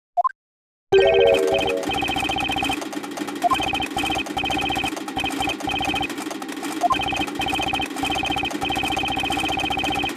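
Rapid electronic blips tick in bursts as dialogue text types out.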